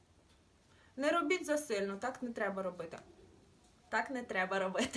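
A young woman speaks clearly and close to the microphone.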